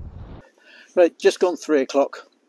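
An elderly man speaks calmly and close.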